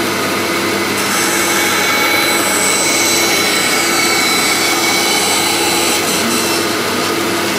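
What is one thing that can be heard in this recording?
A band saw blade cuts through wood with a rasping whine.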